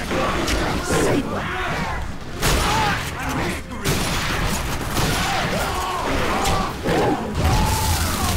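Monsters screech and snarl.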